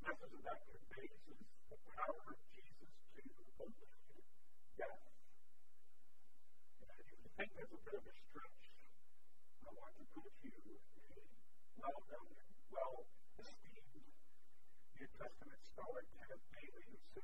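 A middle-aged man speaks calmly through a microphone, with pauses.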